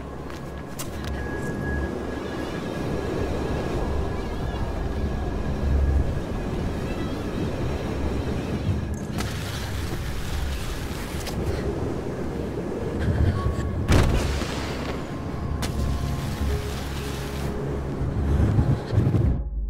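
Wind rushes loudly past during a fast slide.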